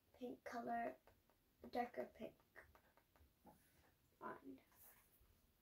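A young girl speaks close by, in a chatty way.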